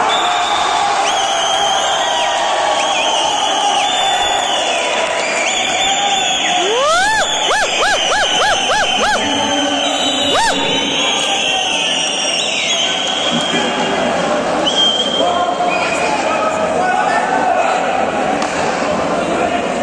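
A volleyball is struck hard by hands.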